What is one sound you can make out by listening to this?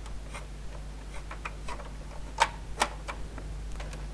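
Small plastic toy parts click and tap under fingers.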